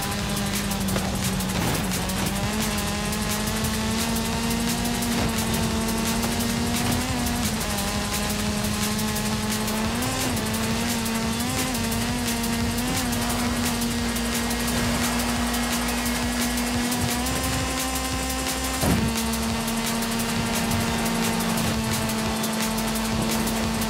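A rally car engine roars and revs at high speed.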